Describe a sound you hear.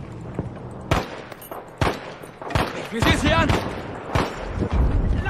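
Single gunshots crack close by.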